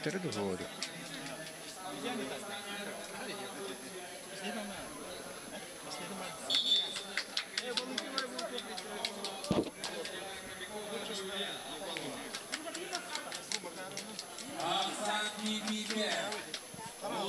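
A crowd murmurs and chatters in a large open arena.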